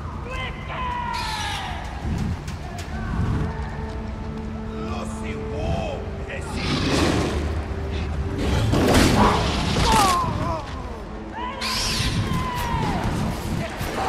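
An owl screeches loudly.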